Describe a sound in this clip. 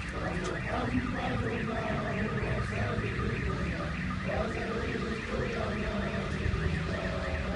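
A crowd of men sings together loudly outdoors.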